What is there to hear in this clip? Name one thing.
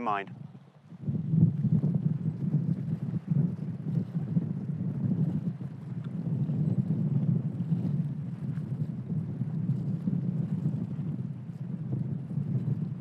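Wind blows outdoors with a low, steady rumble.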